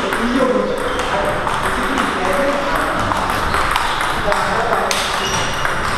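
A ping-pong ball clicks back and forth across a table in a rally.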